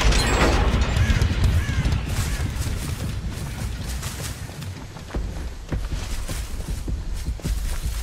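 Footsteps run on grass.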